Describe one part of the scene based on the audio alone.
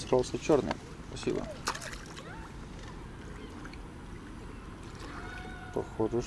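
Water laps gently at a shore.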